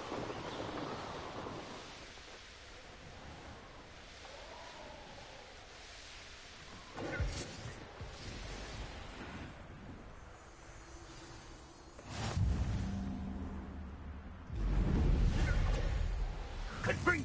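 Wind rushes loudly past during a fast flight.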